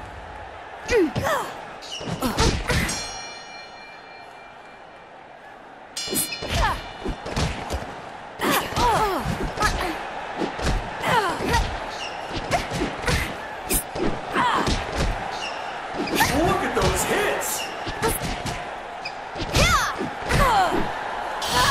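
Boxing gloves thud in quick, heavy punches.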